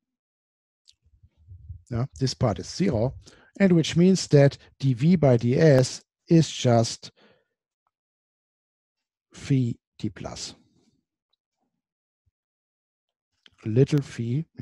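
A man lectures calmly into a close microphone.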